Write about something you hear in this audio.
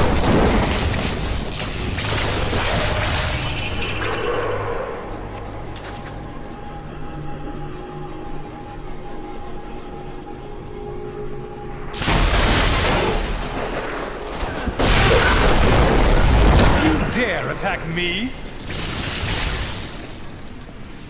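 Magic spells crackle and burst in a game fight.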